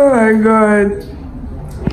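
A young girl hums loudly and happily up close.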